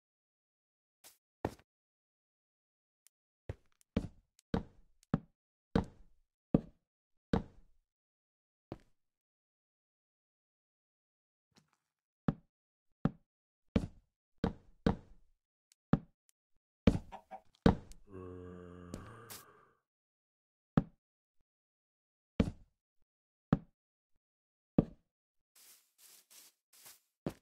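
Blocks are placed with short, dull knocks at an uneven pace.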